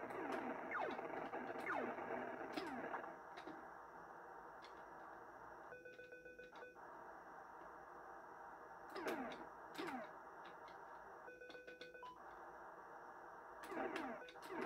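Retro game shots zap with quick falling whistles, several times.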